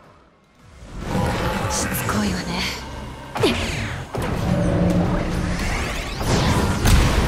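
Energy blasts crackle and roar.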